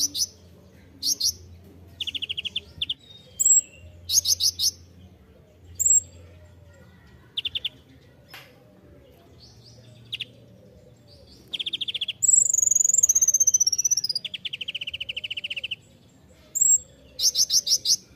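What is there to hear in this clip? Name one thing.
A small songbird chirps and trills in rapid bursts close by.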